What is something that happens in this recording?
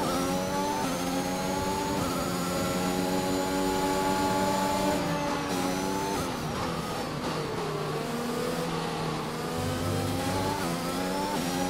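A racing car engine screams at high revs, shifting gears up and down.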